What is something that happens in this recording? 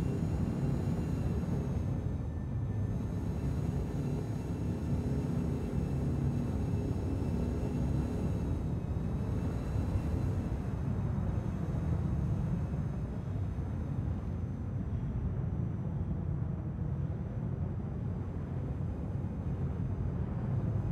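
A spacecraft engine hums with a deep, steady rumble.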